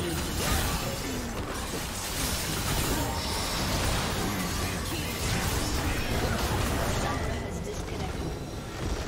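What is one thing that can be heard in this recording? Game battle effects clash and burst rapidly.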